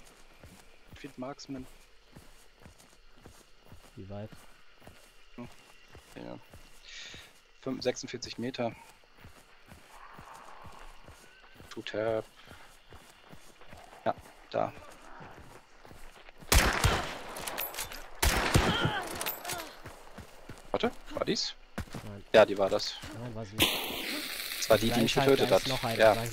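Footsteps crunch through dry grass at a steady pace.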